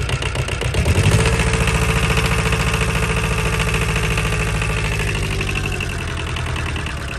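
A diesel engine speeds up, runs faster for a while, then slows back down.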